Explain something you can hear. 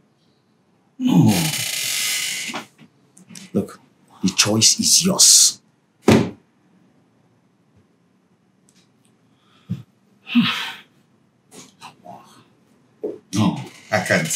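A second man answers in a strained, pained voice.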